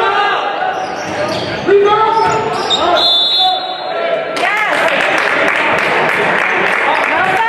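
A crowd murmurs and calls out in an echoing gym.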